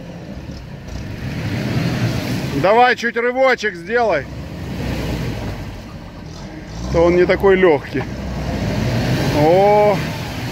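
A car engine rumbles and revs while pulling through mud.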